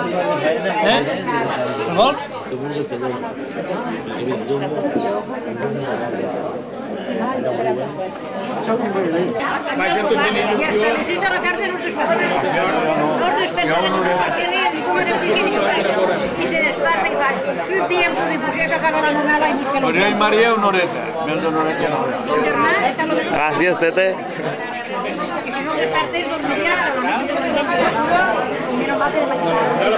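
A crowd of men and women chatters in a busy, echoing room.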